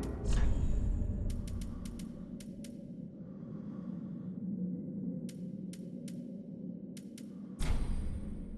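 Short soft clicks tick one after another as menu items are selected.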